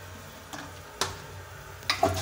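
A toilet flush handle clicks.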